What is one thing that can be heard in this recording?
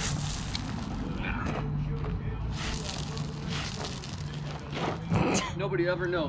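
Footsteps crunch and shuffle on loose gravel outdoors.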